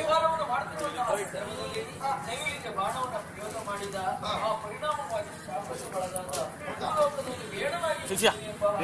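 A man sings in a high, drawn-out voice through a loudspeaker.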